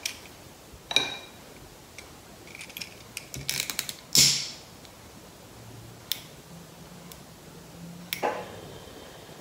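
A lighter clicks several times.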